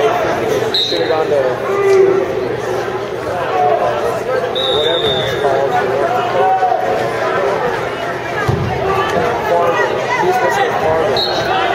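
Shoes squeak sharply on a mat.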